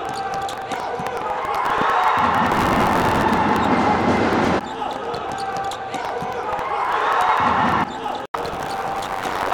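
A ball thuds off a player's foot.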